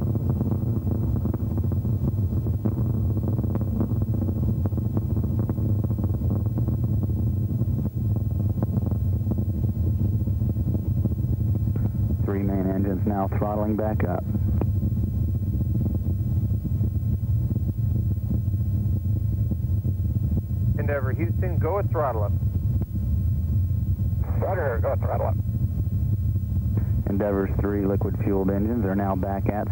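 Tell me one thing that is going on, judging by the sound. A rocket engine roars loudly and steadily with a deep rumble.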